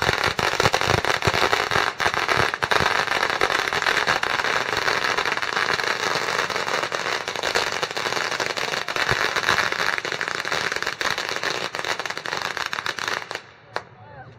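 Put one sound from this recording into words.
Firecrackers crackle and pop in a rapid, loud string.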